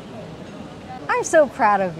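A woman speaks cheerfully into a close microphone.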